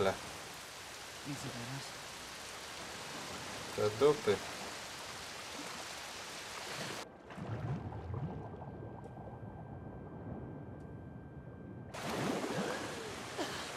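Water sloshes and splashes as someone swims.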